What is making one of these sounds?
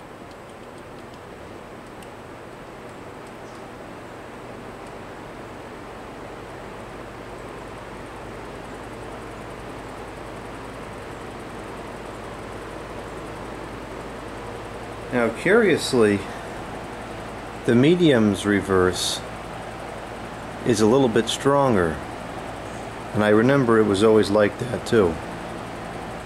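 A box fan whirs steadily.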